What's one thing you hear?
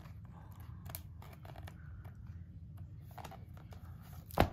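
Book pages flip and rustle softly.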